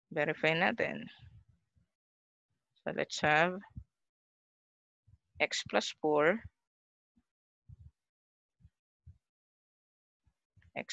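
A woman speaks calmly through a microphone, in short phrases.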